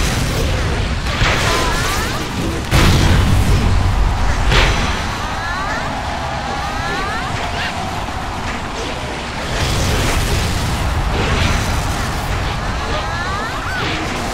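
Game spell effects whoosh and burst repeatedly.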